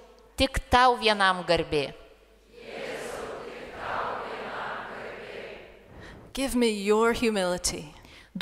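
Two women sing together through microphones in an echoing room.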